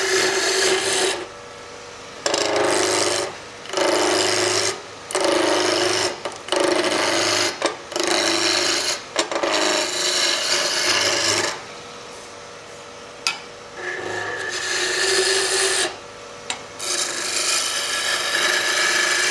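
A wood lathe spins with a steady hum.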